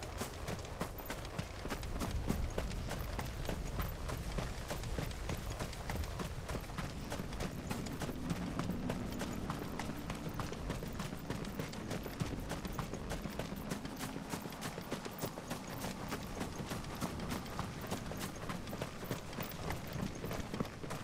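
Footsteps crunch on grass and dirt at a steady walking pace.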